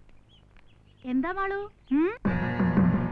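A young woman calls out in a high, sing-song voice.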